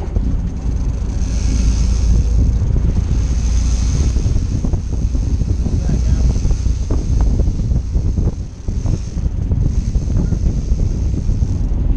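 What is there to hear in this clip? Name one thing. Water splashes and churns behind a boat.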